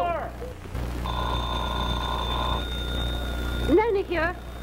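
A phone rings.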